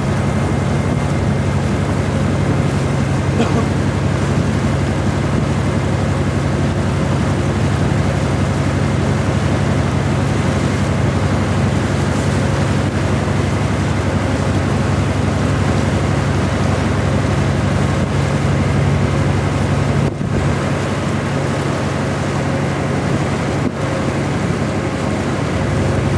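Water laps and splashes gently.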